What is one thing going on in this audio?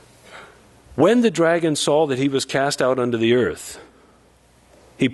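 A man reads aloud calmly into a microphone in a reverberant hall.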